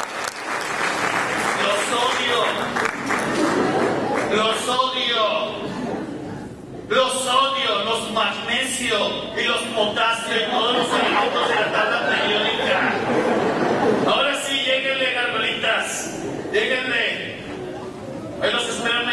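A chorus of young women sings along.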